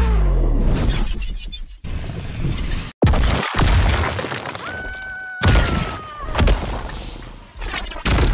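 Rock and glass shatter with loud crashes.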